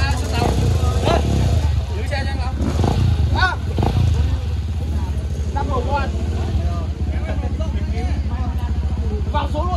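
A dirt bike engine idles close by.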